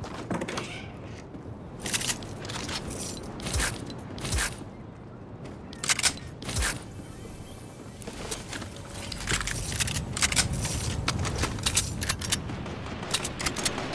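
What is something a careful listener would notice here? Footsteps patter quickly across a floor.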